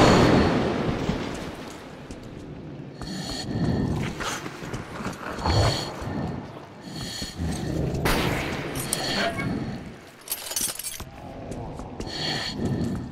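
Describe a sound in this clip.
Footsteps crunch over loose rubble.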